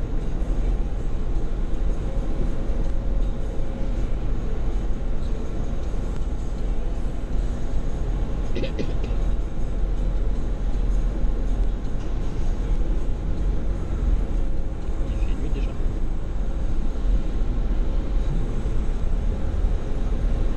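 Car engines idle with a low, steady rumble in an echoing enclosed space.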